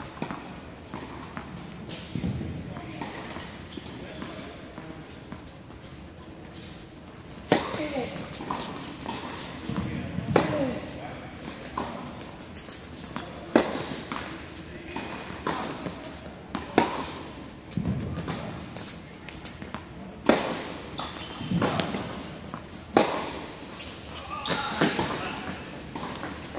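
A tennis ball bounces on the court.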